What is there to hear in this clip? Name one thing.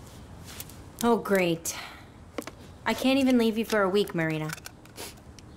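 Another young woman speaks calmly, close by.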